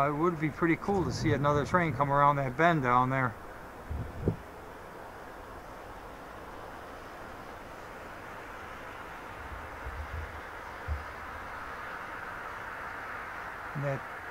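A freight train rumbles slowly along the tracks.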